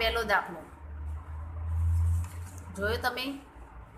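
A hand brushes across a sheet of paper.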